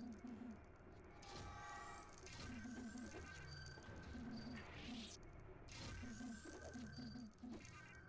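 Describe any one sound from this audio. Coins jingle as they are collected in a video game.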